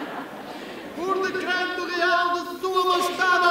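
A man reads out loudly outdoors.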